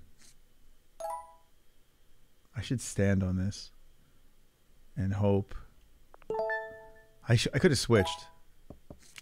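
Short electronic chimes ring out from a card game.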